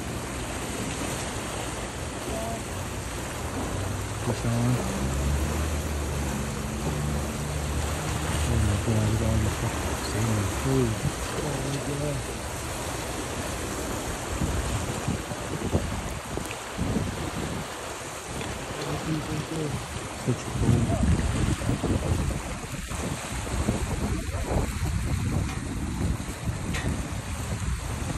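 Fast river water rushes and swirls steadily.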